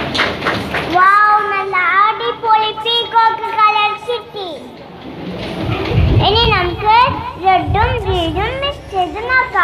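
A young boy speaks into a microphone.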